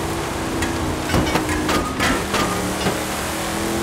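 A truck knocks through a fence with a few sharp cracks.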